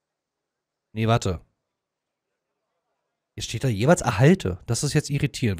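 A man speaks calmly and close.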